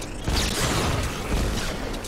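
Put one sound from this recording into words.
An electric zap crackles.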